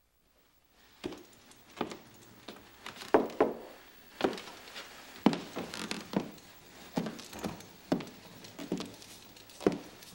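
High heels click on a wooden floor.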